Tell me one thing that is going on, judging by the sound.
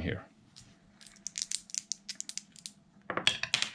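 Dice rattle and clatter in a wooden tray.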